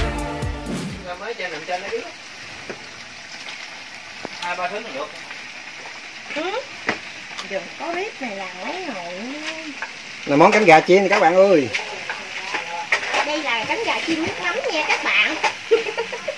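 Hot oil sizzles and bubbles in a frying pan.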